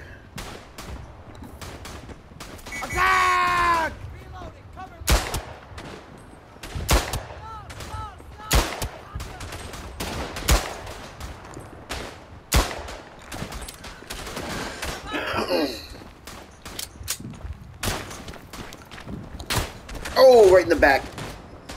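Distant gunfire crackles.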